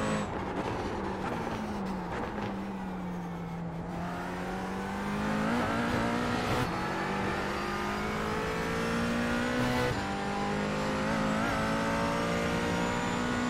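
A racing car engine drones, dropping in pitch as the car slows for a turn, then revs up through the gears.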